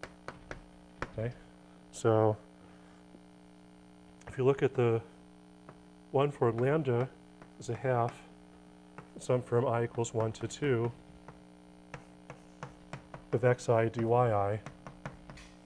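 A man speaks calmly and clearly, as if lecturing.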